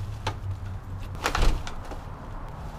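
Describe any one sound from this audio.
A glass door clunks open.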